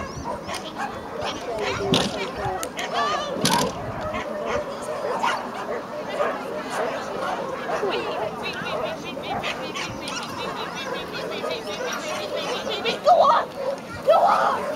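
A crowd of people chatters in the distance outdoors.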